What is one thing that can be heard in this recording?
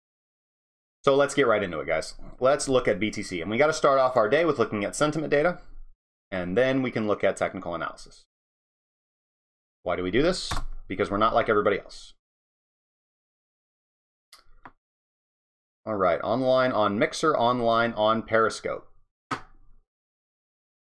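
A man talks calmly and closely into a microphone, in short bursts with pauses.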